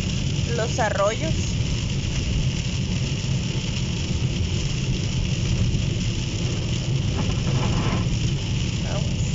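Heavy rain pounds steadily on a car windscreen.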